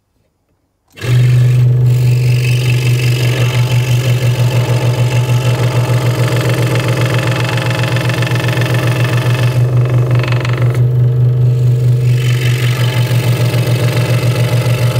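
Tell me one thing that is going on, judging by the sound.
A scroll saw hums and buzzes steadily as it cuts through wood.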